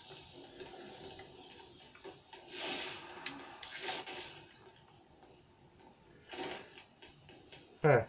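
Video game sound effects play faintly through a television speaker.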